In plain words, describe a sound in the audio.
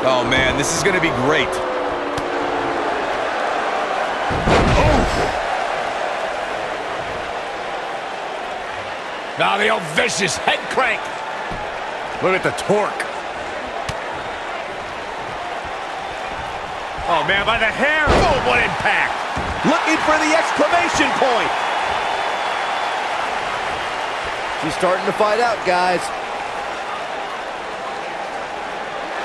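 A large crowd murmurs and cheers steadily in a big arena.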